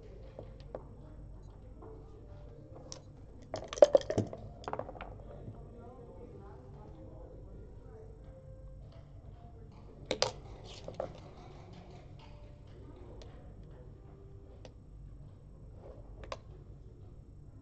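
Plastic checkers click and clack as a hand moves them on a board.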